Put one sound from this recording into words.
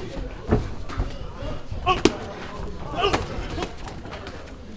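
Gloves thud as two fighters trade punches and kicks.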